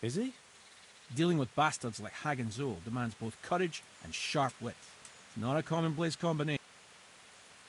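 A man speaks calmly and steadily.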